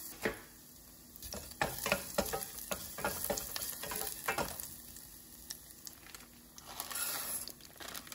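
Garlic sizzles softly in hot oil.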